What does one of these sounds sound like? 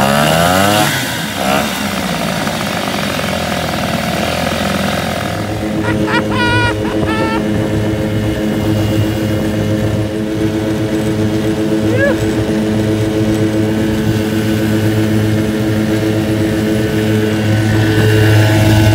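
A small outboard motor runs with a loud steady drone.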